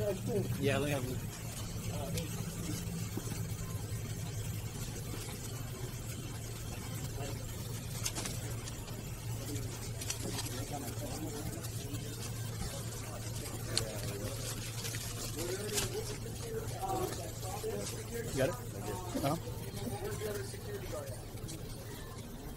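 A crowd of people murmurs and chatters indoors.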